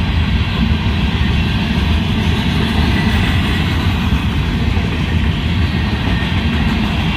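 A freight train rumbles and clatters past at close range.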